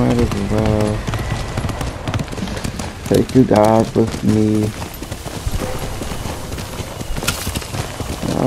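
A horse gallops with rapid hoofbeats.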